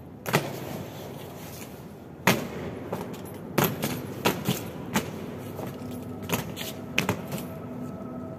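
Boots stamp sharply on stone as soldiers march.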